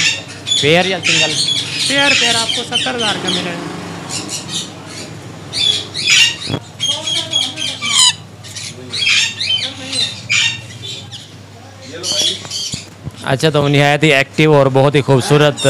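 Parrots chirp and squawk shrilly nearby.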